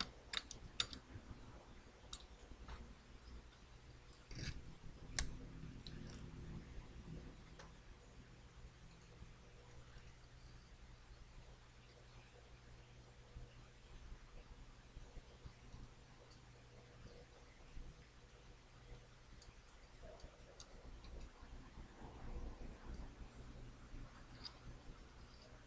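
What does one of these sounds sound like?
Small clicks and taps come from handling a circuit board.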